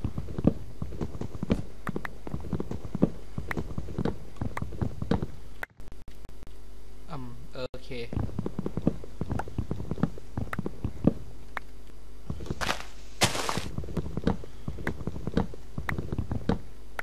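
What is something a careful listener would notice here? An axe chops wood with quick repeated knocks.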